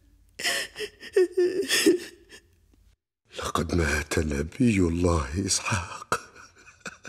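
An elderly woman sobs and cries out in distress.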